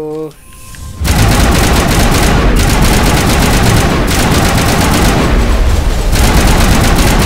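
Rapid gunfire rattles loudly and without a break.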